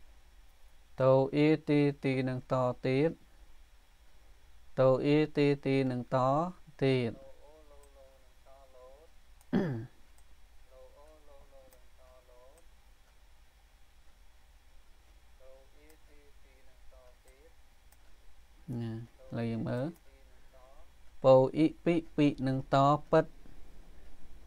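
A man speaks slowly and clearly into a microphone, pronouncing words one syllable at a time.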